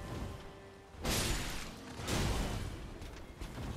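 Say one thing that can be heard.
Weapons swing and clash in a fight.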